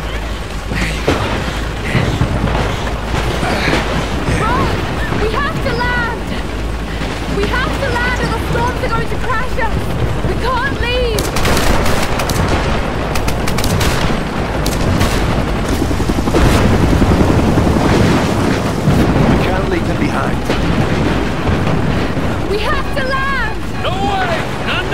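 Heavy rain and storm wind roar.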